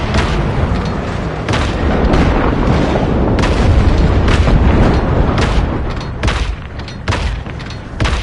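Rockets whoosh as they launch.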